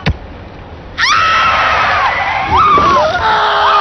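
A woman screams loudly.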